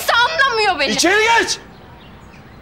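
A middle-aged man shouts angrily up close.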